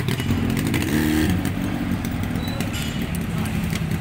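A Yamaha RD350 two-stroke twin motorcycle pulls away.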